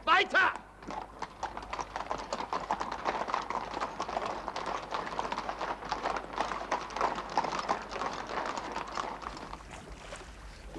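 Horses' hooves clop on a cobbled street.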